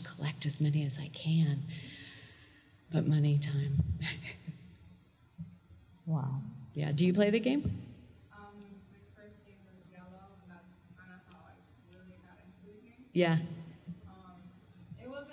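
A woman speaks with animation into a microphone in an echoing hall.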